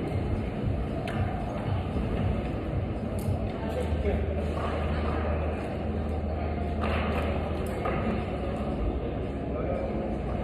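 A climbing rope is fed through a belay device.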